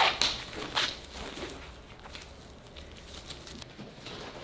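Rubber gloves squeak and snap as they are pulled onto hands.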